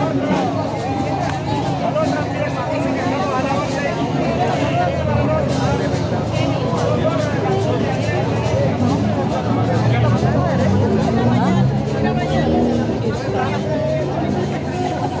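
A crowd of men and women chatters loudly outdoors.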